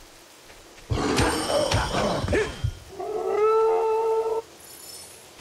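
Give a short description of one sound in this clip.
A sword swings with a loud, ringing magical whoosh.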